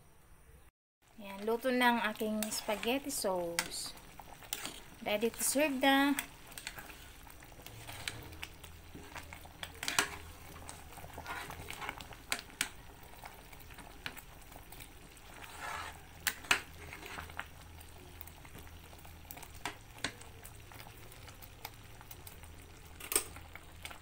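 Thick sauce bubbles and pops as it simmers.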